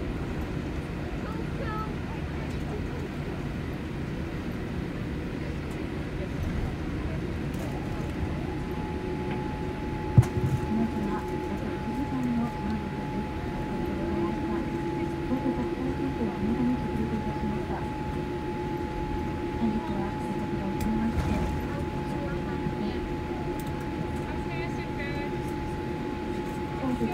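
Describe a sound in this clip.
Jet engines hum steadily inside an airliner cabin.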